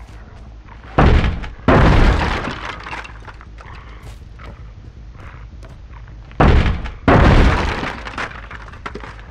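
Wooden boards smash and splinter loudly.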